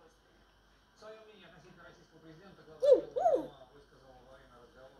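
A parrot makes low, chattering and mumbling sounds close by.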